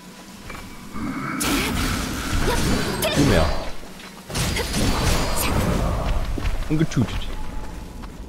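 A creature snarls and shrieks.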